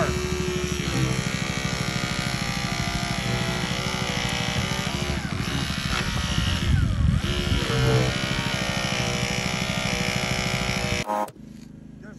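A hydraulic rescue tool whirs and hums steadily.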